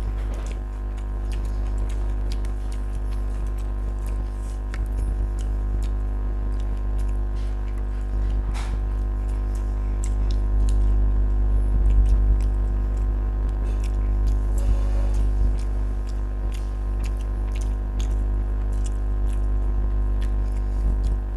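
A man chews food loudly with wet smacking sounds.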